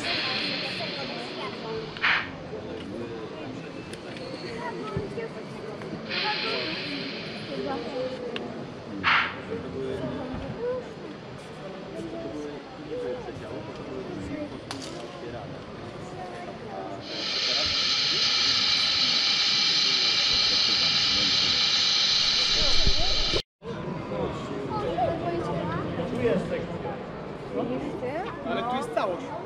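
A crowd of people chatters in the background of a large echoing hall.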